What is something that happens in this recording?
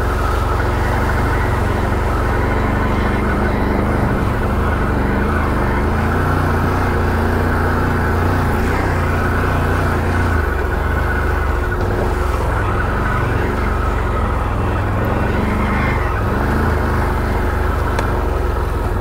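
Tyres crunch over dirt and stones.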